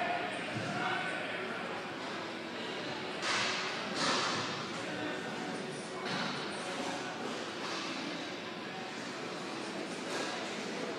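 A crowd chatters and cheers in a large echoing arena.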